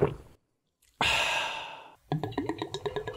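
A young man laughs briefly.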